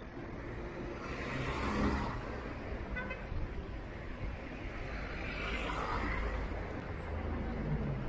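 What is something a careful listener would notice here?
Cars drive past on a street nearby.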